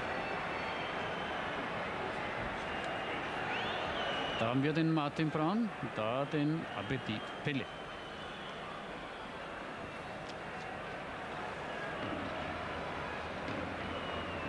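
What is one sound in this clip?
A stadium crowd murmurs and cheers steadily in the distance.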